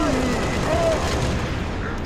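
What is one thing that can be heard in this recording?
Gunfire bursts out at close range.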